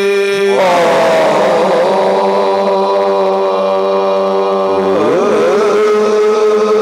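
A group of men sing along together.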